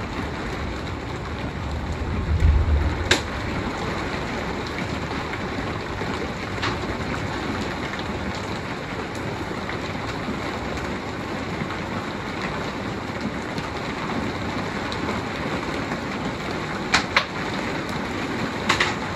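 Strong wind roars through trees outdoors.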